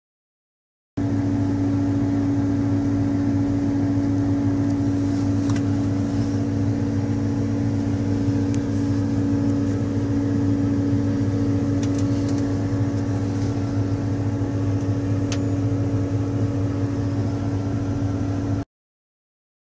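A combine harvester engine drones steadily, heard from inside the cab.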